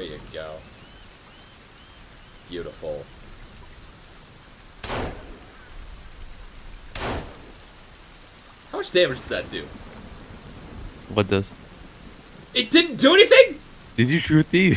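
A young man talks into a close microphone, growing more animated and exclaiming toward the end.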